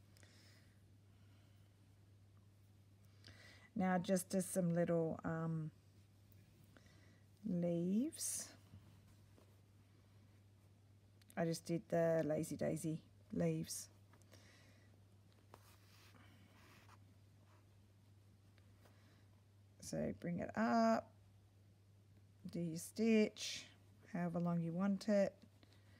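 Thread is pulled through fabric with a soft rasp.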